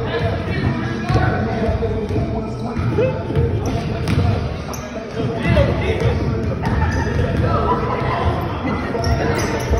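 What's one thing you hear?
Young people shout and call out across a large echoing gym.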